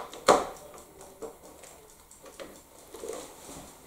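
Plastic strips click and tap as they are handled.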